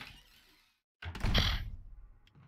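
A heavy wooden door slams shut with a boom.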